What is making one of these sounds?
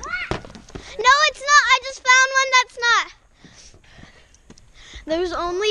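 A young girl talks excitedly close to the microphone.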